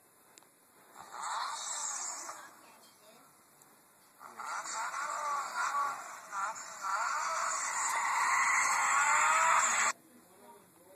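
A small toy car's electric motor whines and revs, heard through a tiny phone speaker.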